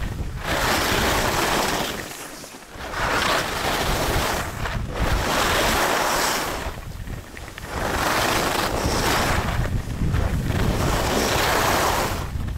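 Skis carve and scrape across hard snow in long swooshing turns.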